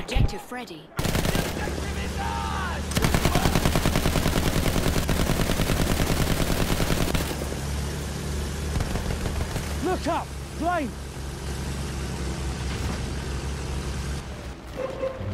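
A biplane's engine drones in flight.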